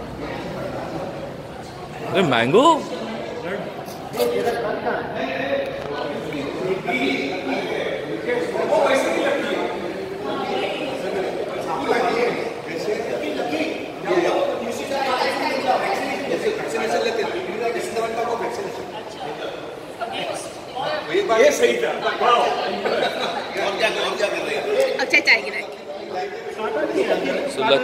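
Men and women talk and chatter in a group nearby.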